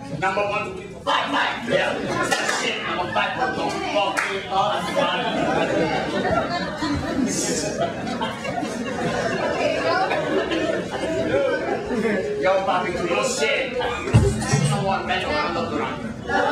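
An audience laughs in a small room.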